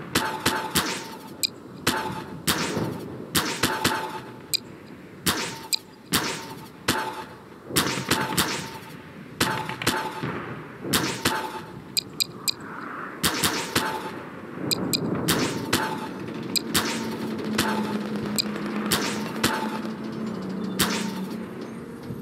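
A game gun fires crackling electric bolts in sharp bursts.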